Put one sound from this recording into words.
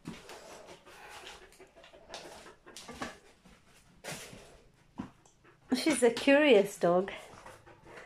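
A dog's paws click on a wooden floor.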